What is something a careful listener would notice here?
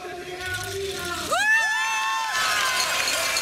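Young women shout with excitement.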